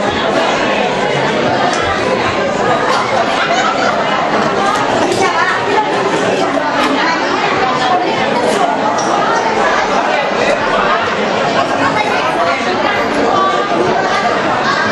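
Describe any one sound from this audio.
A large crowd chatters in an echoing hall.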